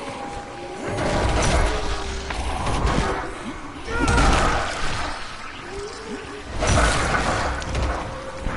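A spiked club thuds heavily into bodies, again and again.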